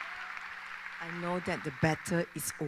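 A young woman speaks into a microphone, heard over loudspeakers in a large echoing hall.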